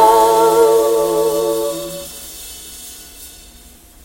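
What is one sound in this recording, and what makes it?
A woman sings a long, wavering held note that ends and echoes away.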